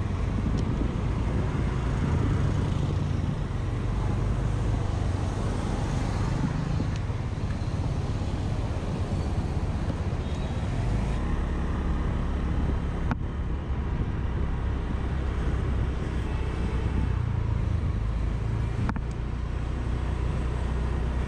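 A scooter engine hums steadily up close.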